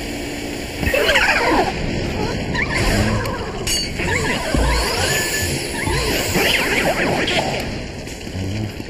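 A vacuum roars as it sucks in air.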